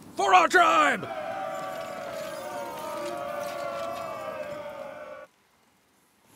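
A crowd of men chants and cheers together.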